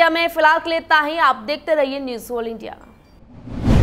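A young woman reads out the news clearly into a microphone.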